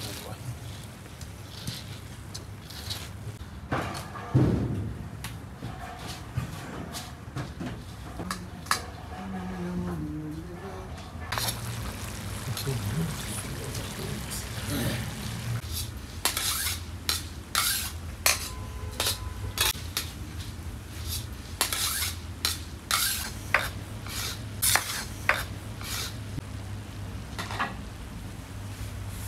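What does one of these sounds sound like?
Rice sizzles and hisses in hot oil.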